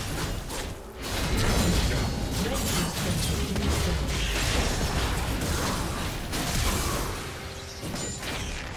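Video game spell effects and weapon hits clash and crackle in a busy battle.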